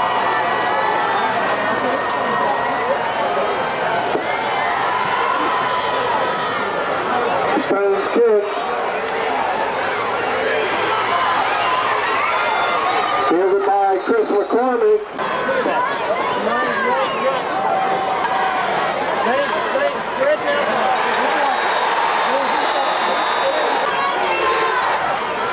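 A large crowd cheers and shouts throughout.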